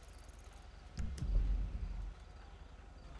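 A car engine rumbles low.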